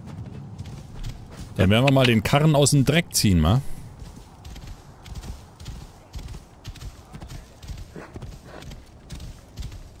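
Horse hooves thud steadily on sand.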